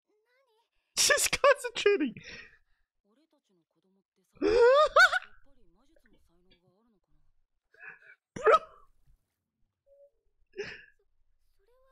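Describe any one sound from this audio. A young man laughs loudly into a microphone.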